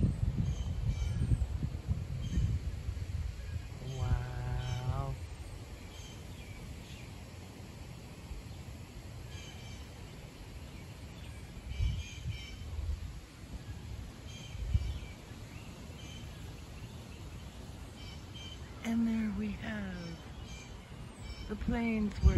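Wind blows outdoors and rustles the leaves of tall trees.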